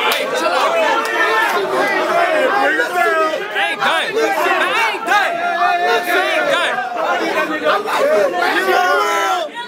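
A crowd of young people cheers and shouts.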